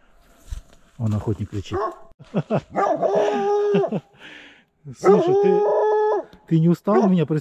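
A dog whines and howls nearby.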